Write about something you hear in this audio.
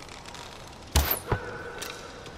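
A compound bow looses an arrow with a sharp snap.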